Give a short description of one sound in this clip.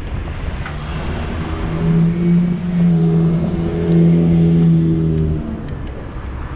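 A bus engine hums loudly as it passes nearby.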